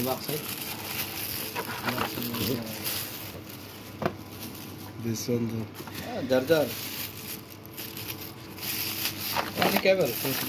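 A plastic bag rustles and crinkles as it is handled.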